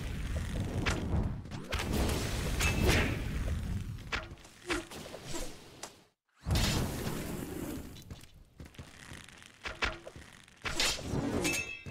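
Video game guns fire in quick bursts.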